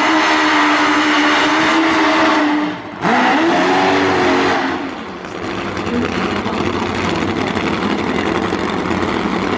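A rear tyre screeches as it spins on the track.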